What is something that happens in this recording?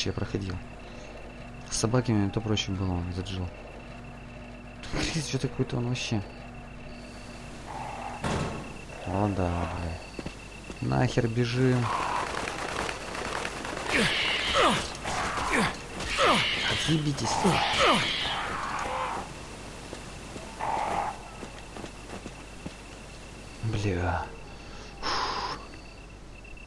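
A young man talks into a headset microphone, close up.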